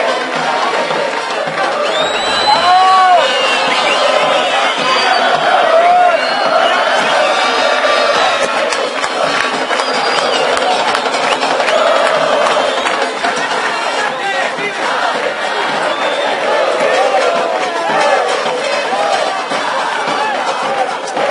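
A large crowd of fans chants and shouts steadily outdoors.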